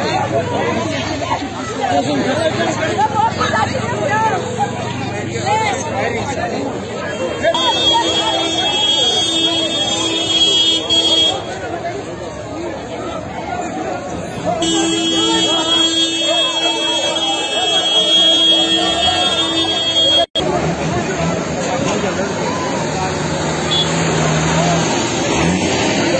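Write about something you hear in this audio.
A crowd of men and women talks and shouts outdoors.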